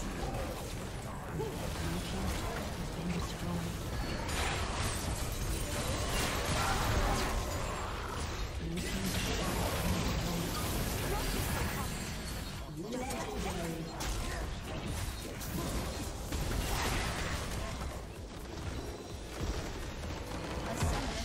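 Video game battle effects crash and boom.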